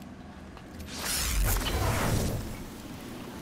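A loud blast bursts with a rushing whoosh and fades.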